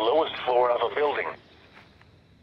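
A robotic voice speaks through a small radio speaker.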